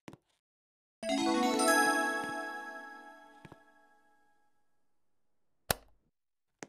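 A game chime rings out and slowly fades.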